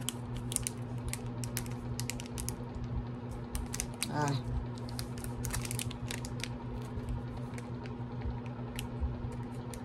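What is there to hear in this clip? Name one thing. Paper cards rustle and crinkle close by.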